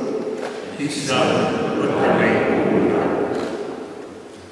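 A woman reads aloud into a microphone in a large echoing hall.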